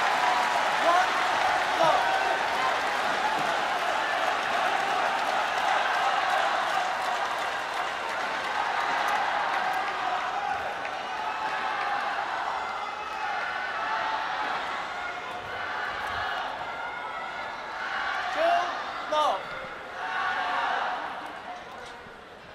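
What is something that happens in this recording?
A large crowd cheers and shouts in a big echoing hall, then quiets down.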